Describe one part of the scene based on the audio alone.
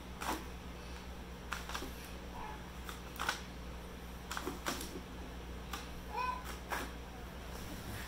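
Small bare feet patter on a wooden floor.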